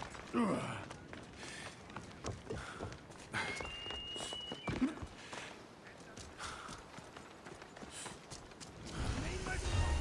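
Quick footsteps run over gravel and wooden boards.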